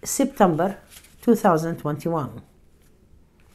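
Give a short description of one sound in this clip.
A middle-aged woman speaks calmly and close to a clip-on microphone.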